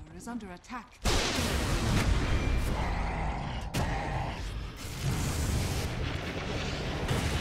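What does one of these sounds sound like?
Magic blasts whoosh and crackle in a noisy fantasy battle.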